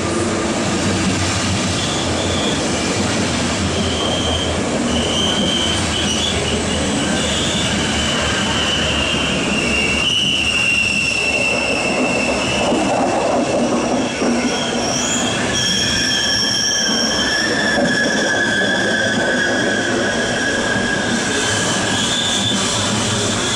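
A passenger train rushes past close by with a loud, steady roar.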